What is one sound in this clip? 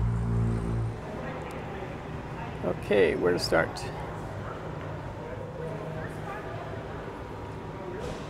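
Visitors murmur faintly in a large echoing hall.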